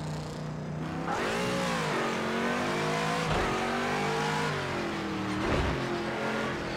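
A racing car engine revs hard, rising and falling in pitch as it shifts gears.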